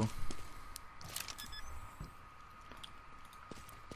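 Keypad buttons beep as a bomb is armed.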